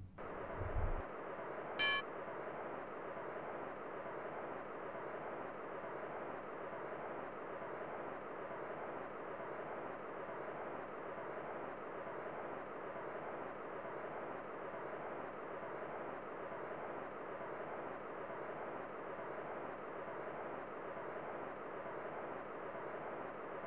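Upbeat video game music plays steadily.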